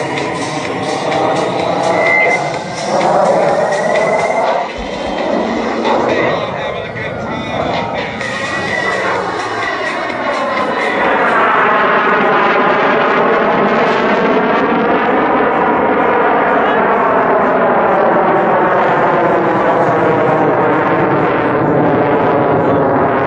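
A CF-18 Hornet fighter jet roars overhead in afterburner, its roar sweeping and phasing as it climbs.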